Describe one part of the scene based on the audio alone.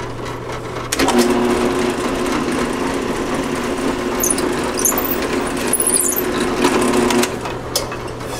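A drill press motor whirs steadily, then stops.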